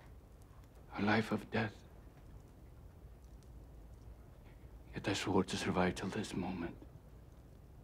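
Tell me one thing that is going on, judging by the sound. A man speaks in a low voice, close by.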